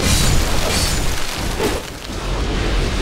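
Combat clashes and thuds with a burst of noise.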